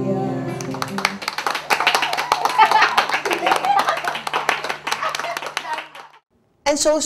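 Children clap their hands rapidly.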